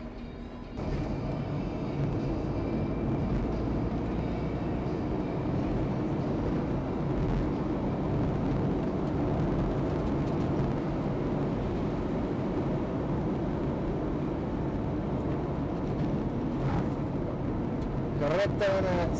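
Tyres hiss on a wet asphalt road.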